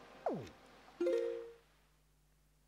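A short video game chime sounds as the game pauses.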